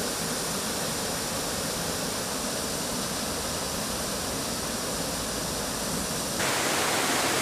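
A waterfall roars and water rushes steadily over rocks.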